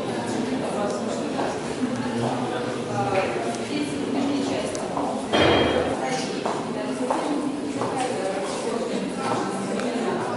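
Several adults talk among themselves in a room.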